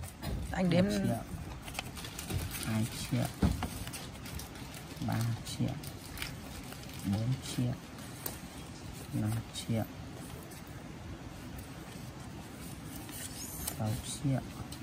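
Paper banknotes rustle and flick as they are counted by hand.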